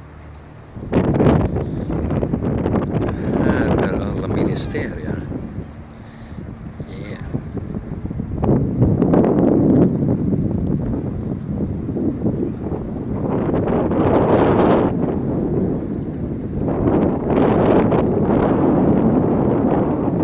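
Wind gusts and buffets outdoors by open water.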